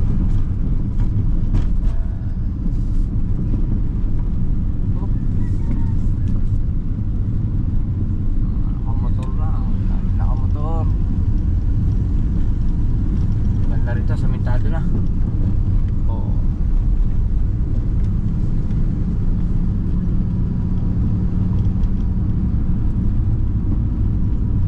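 Tyres rumble steadily along a road.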